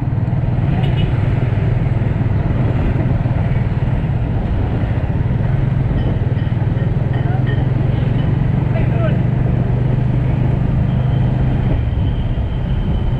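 A motorcycle engine hums steadily up close as it rides along.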